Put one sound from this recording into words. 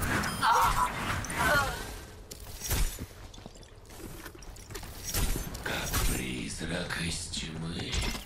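Game gunfire bursts in sharp shots.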